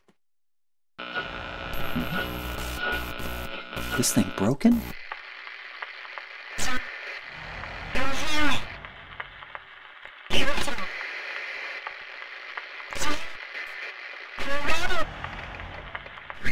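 A radio hisses and crackles with static.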